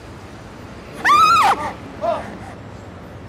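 A woman cries out in surprise.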